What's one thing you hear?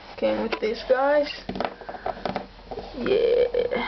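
Small plastic toys tap and clatter on a wooden table.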